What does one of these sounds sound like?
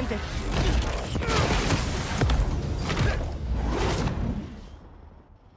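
Heavy metal crashes and grinds with loud booms.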